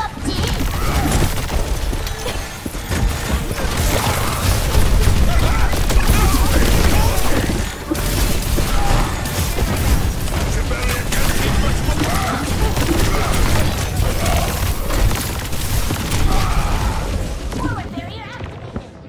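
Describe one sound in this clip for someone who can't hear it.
Video game gunfire and explosions crackle and boom rapidly, then fall quiet.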